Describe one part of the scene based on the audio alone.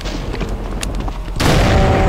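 A monster growls loudly nearby.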